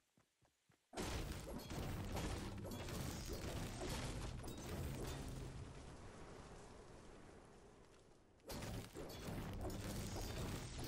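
A pickaxe strikes wood again and again with hard thuds.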